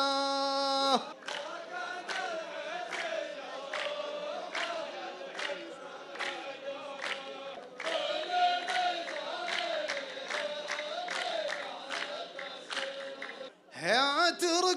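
A group of men clap their hands in a steady rhythm.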